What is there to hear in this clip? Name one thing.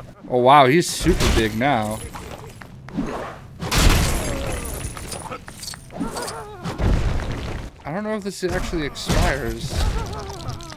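Heavy blows land with loud thuds during a fight.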